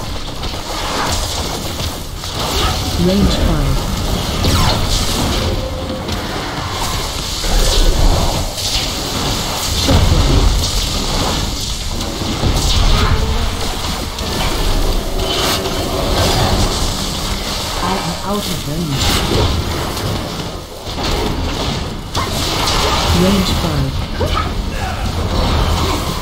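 Video game spell effects crackle and boom during a fight.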